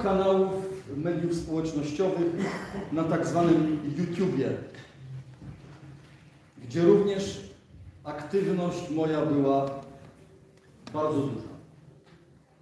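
An elderly man speaks loudly and with emotion in a large echoing room.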